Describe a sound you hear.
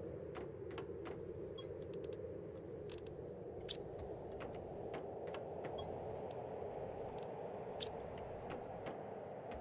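Soft clicks sound as items are moved in a menu.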